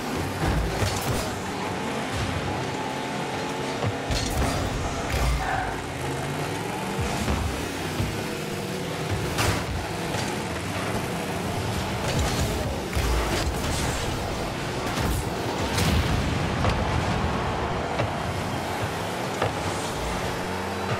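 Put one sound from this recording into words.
Car engines hum and whine steadily.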